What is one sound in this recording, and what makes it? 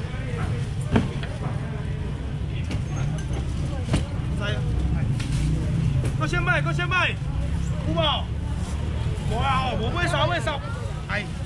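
A fish thumps and slaps against a plastic box.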